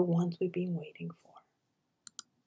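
A middle-aged woman speaks calmly through an online call.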